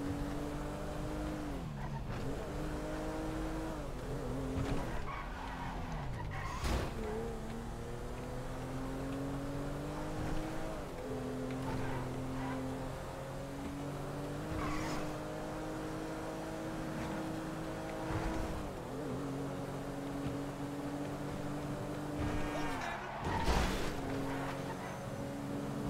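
Tyres screech on asphalt as the car drifts.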